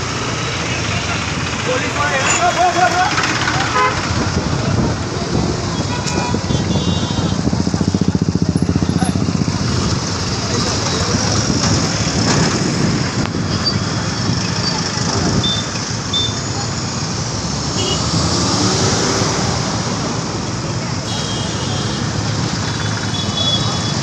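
Motorcycle engines putter close by.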